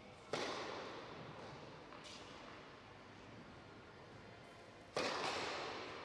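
A tennis ball is struck hard with a racket, ringing out in a large echoing hall.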